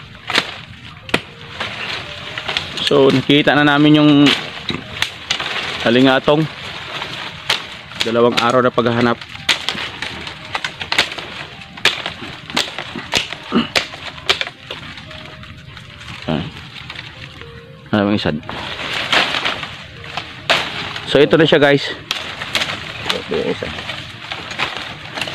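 A man hacks at plants with a machete, in sharp chopping knocks.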